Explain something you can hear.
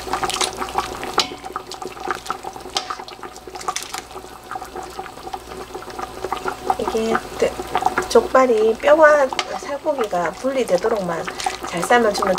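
A metal ladle clinks and scrapes against a metal pot.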